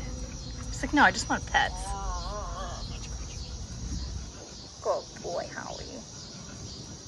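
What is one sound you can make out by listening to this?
A woman speaks softly and warmly to a dog close by.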